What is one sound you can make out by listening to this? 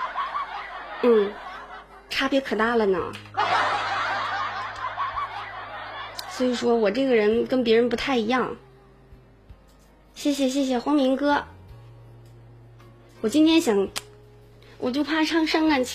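A young woman speaks close to a microphone with animation, in short bursts.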